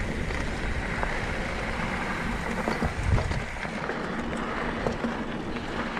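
A bicycle rattles and clatters over bumps.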